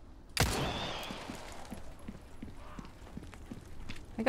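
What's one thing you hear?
Footsteps hurry over stone.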